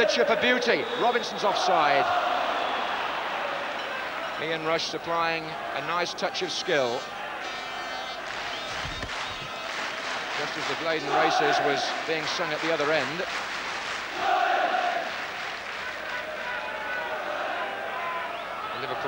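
A large stadium crowd roars and chants throughout.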